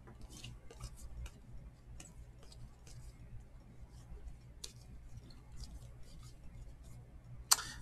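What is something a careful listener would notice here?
Glossy trading cards slide and rustle against each other in hands.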